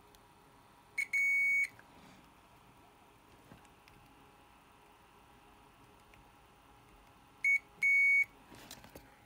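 A multimeter gives short, high, steady beeps as test probes touch a circuit board.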